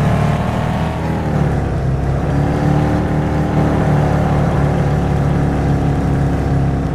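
A monster truck engine rumbles steadily as the truck drives along.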